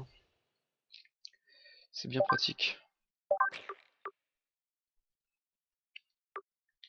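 Short game menu blips chime as selections change.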